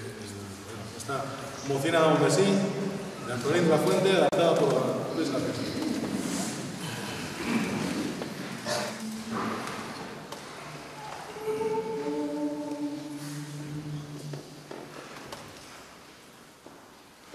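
A mixed choir sings together in a large echoing hall.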